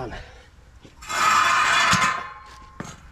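A metal grate scrapes and rattles against its frame.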